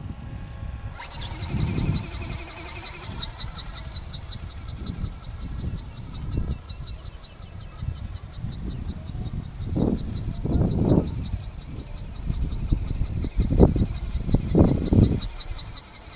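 A small model plane's electric motor whines high overhead.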